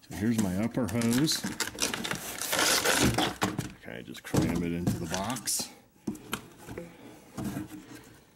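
A rubber hose rubs and scrapes against a cardboard box.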